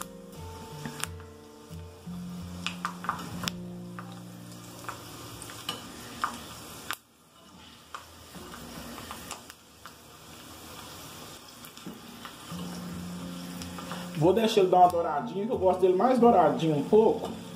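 Food sizzles as it fries in hot oil.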